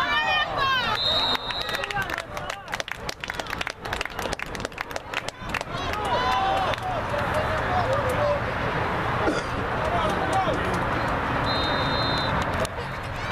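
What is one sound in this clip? A referee blows a sharp whistle twice.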